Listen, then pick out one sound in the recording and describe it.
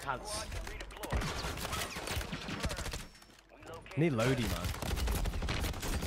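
Rapid gunshots crack from a video game.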